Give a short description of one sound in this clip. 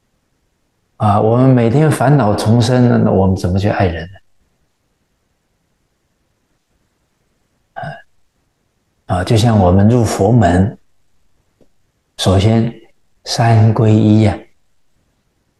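An elderly man speaks calmly through a close microphone, in short phrases with pauses.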